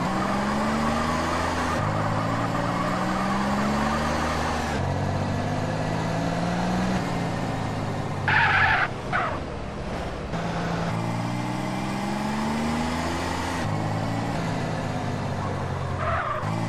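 A car engine hums and revs up and down as it drives.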